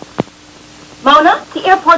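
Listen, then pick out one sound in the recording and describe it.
A young woman speaks close by, clearly and with feeling.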